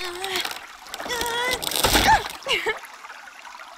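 Wooden planks crash and splinter as a gate breaks.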